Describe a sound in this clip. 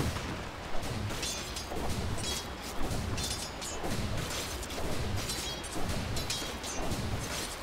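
Weapons clash and spells crackle in a fast video game battle.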